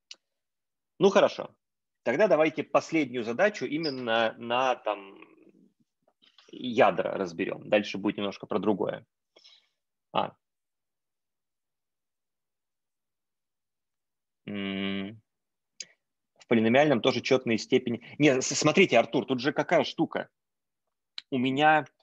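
A man speaks calmly through an online call microphone, explaining.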